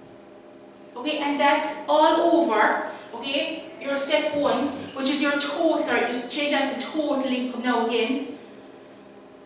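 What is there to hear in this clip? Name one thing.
A woman speaks clearly and steadily nearby, explaining.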